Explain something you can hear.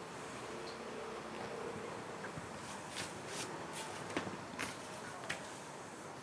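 A ruler slides across paper.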